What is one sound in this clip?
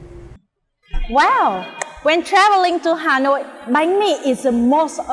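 A young woman talks clearly into a close microphone.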